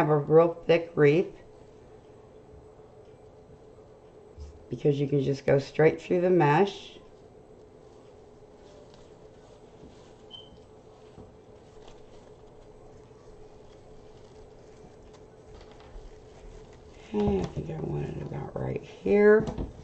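Stiff mesh ribbon rustles and crinkles as it is handled.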